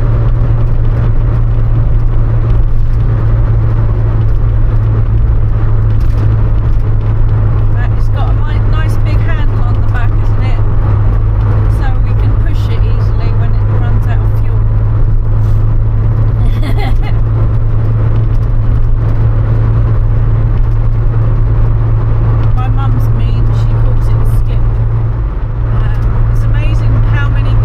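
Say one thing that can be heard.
Tyres roar steadily on a road.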